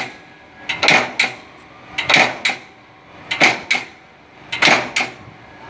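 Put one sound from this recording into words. A power press thumps and clanks in a steady rhythm, about once every second and a half.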